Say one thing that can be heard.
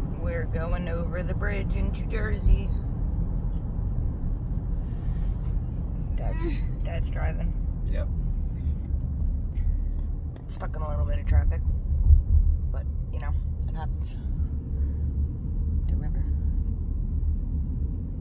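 A car's tyres rumble steadily on the road from inside the car.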